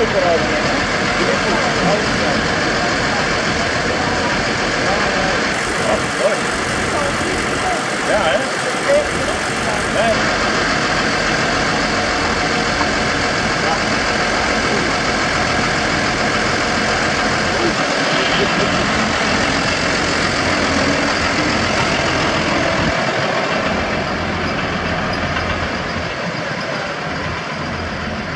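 Tractor engines rumble steadily nearby.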